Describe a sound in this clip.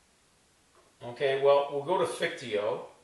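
An elderly man speaks aloud close by.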